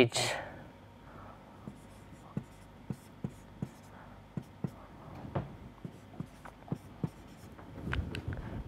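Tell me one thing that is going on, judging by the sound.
A marker taps and scratches on a whiteboard.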